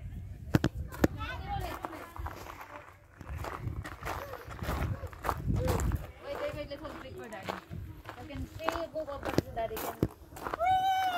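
Young girls talk and call out excitedly nearby.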